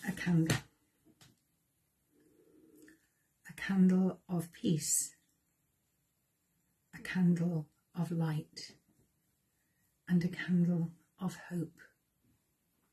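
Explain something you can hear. A middle-aged woman speaks calmly and close to a microphone, with pauses.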